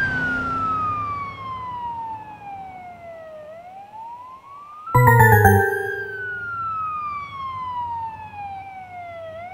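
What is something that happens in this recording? A siren wails in long falling and rising sweeps.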